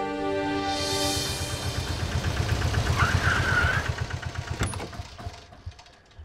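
A van engine rumbles as the van pulls up and stops.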